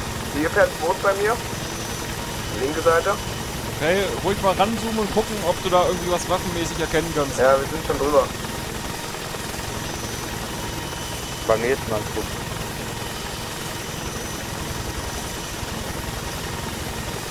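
A helicopter's rotor thuds and its engine drones steadily.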